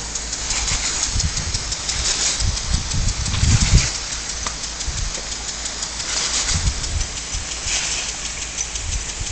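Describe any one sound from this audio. A lawn sprinkler hisses and sprays water steadily.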